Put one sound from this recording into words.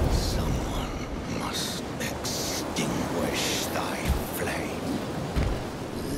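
An elderly man speaks in a deep, slow voice.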